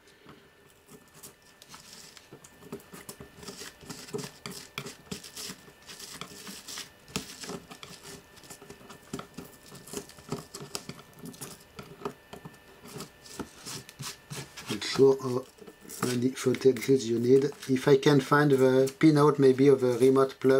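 A metal pick scrapes and picks at crumbly foam.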